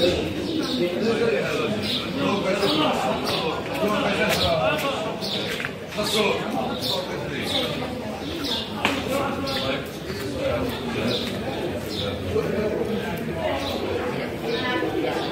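A crowd of men and women chat.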